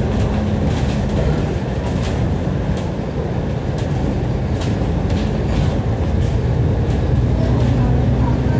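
The diesel engine of a double-decker bus drones, heard from inside as the bus pulls along a street.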